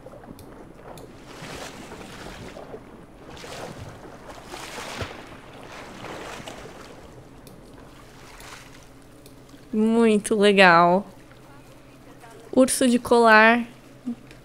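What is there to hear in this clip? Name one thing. Water splashes as a bear swims.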